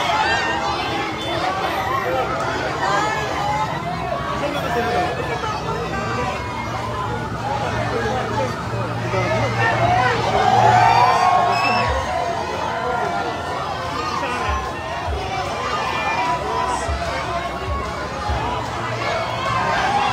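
A truck engine rumbles as the truck rolls slowly through the crowd.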